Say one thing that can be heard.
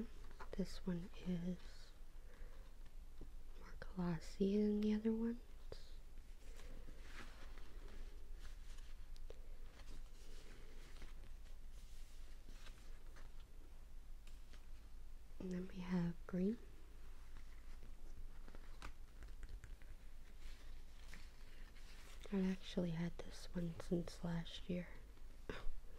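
Plastic folders rustle and slap softly as they are flipped through.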